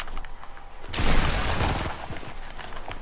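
A burst of bright energy roars loudly.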